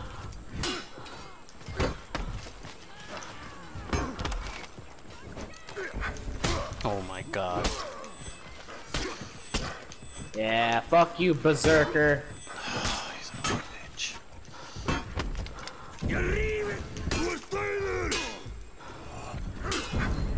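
Metal weapons clash and strike in quick, heavy blows.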